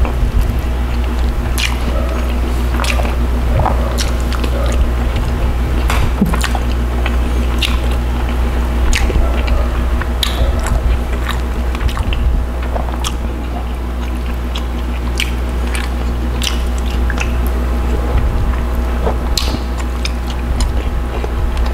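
Fingers peel and tear soft fish flesh with wet squelches.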